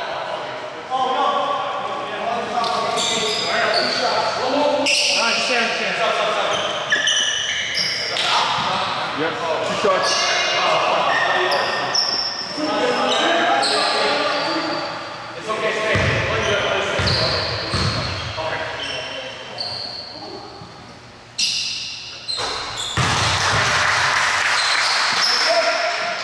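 A basketball bounces on the floor, echoing in a large hall.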